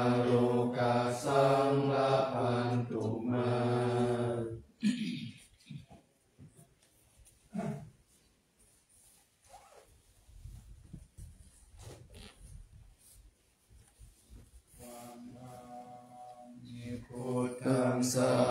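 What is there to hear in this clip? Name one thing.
A group of men chant together in a low, steady drone.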